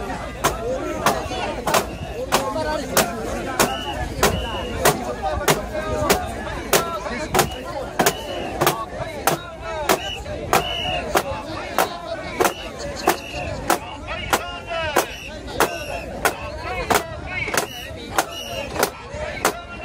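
A large crowd of men chants loudly together outdoors.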